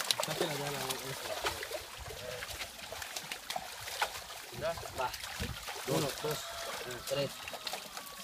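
Water splashes and sloshes around people wading.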